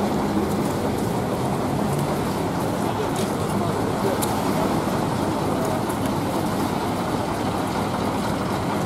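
A bus engine idles nearby.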